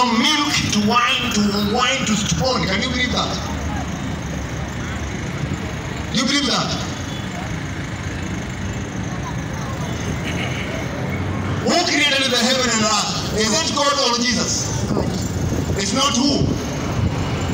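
A large crowd murmurs in the background outdoors.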